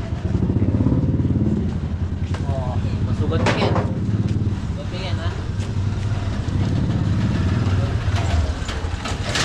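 A motorcycle engine putters steadily close by.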